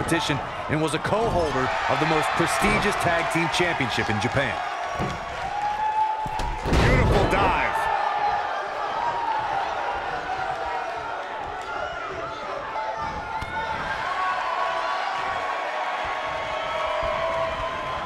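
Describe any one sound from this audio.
A large crowd cheers and murmurs in an echoing arena.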